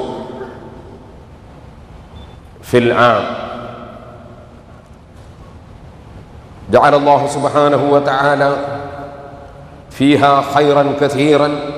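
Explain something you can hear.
A middle-aged man speaks with animation into a microphone in an echoing hall, with pauses between phrases.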